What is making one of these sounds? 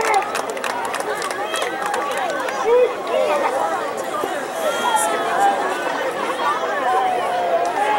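A crowd of young men chatters at a distance.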